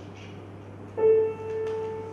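A clarinet plays a held note.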